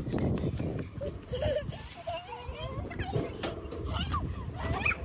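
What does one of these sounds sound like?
Young children babble and call out nearby.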